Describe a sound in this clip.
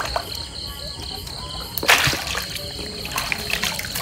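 Water splashes as a fish is pulled from it.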